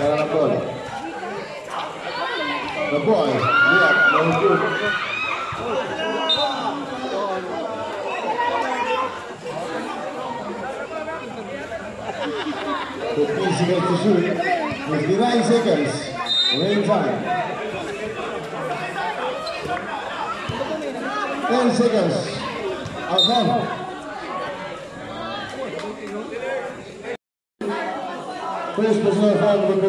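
A crowd of spectators chatters and calls out loudly nearby.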